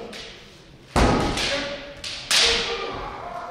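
Wooden swords clack together.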